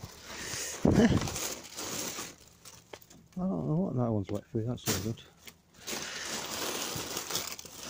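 Plastic bags crinkle and rustle close by.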